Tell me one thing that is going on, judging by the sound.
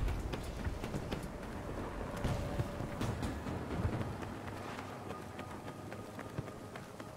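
Gunfire crackles in the distance.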